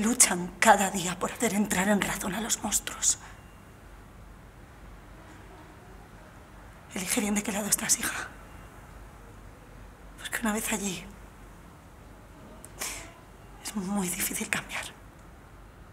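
A middle-aged woman speaks close by in an upset, pleading voice.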